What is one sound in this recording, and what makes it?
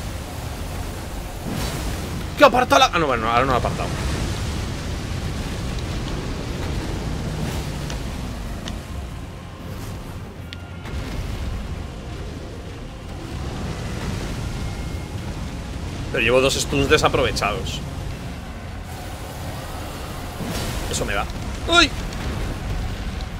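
Water splashes as a fighter wades and strikes.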